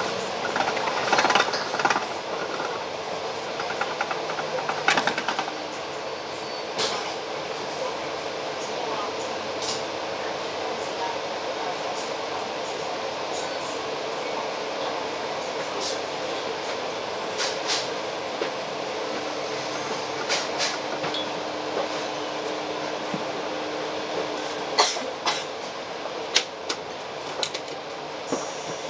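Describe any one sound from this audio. Heavy city traffic rumbles steadily outdoors.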